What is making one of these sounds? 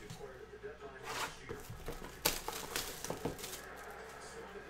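Plastic wrapping crinkles and rustles as it is torn open.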